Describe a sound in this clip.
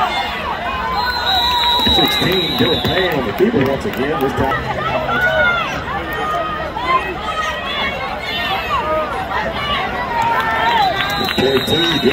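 A referee's whistle blows in long shrill blasts.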